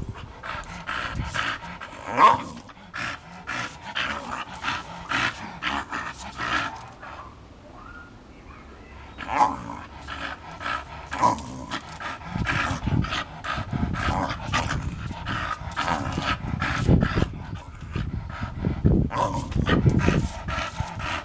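A dog growls and snarls close by.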